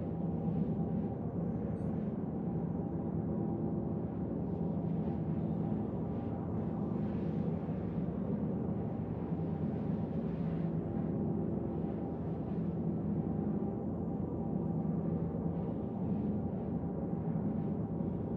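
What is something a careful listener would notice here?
A spaceship's engine drones with a steady, deep rumbling roar.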